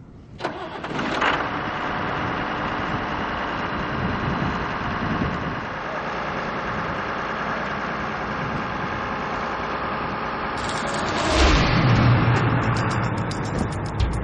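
A grain auger motor runs with a steady rattling drone.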